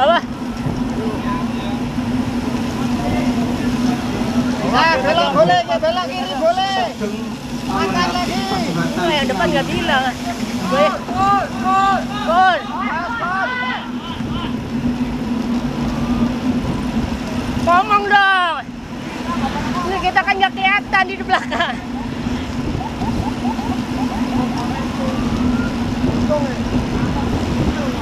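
Wind rushes steadily past the microphone outdoors.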